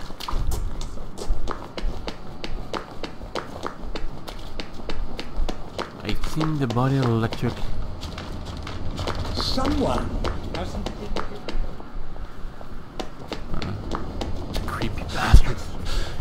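Footsteps tap steadily on stone pavement.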